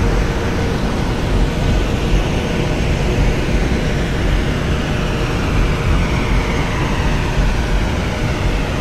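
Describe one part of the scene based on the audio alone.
A jet engine's whine rises as it speeds up.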